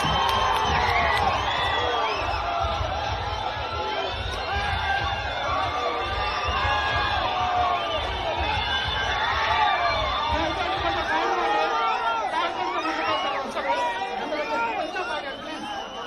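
Many men shout and whistle excitedly close by.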